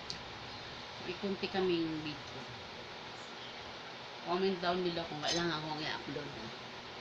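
A middle-aged woman speaks casually close by.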